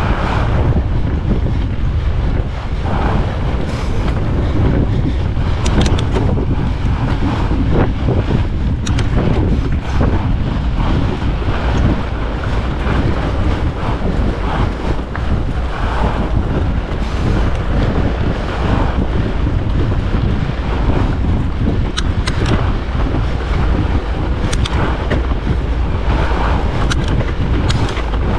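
Fat bike tyres crunch over packed snow.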